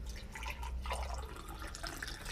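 Liquid pours into a glass jug.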